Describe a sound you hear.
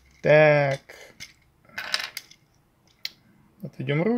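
Small plastic parts click softly as they are moved into place.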